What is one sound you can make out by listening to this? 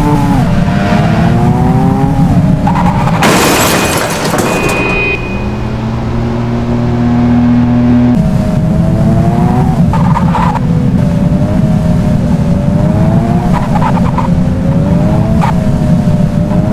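A car engine roars and revs up repeatedly, rising in pitch through each gear.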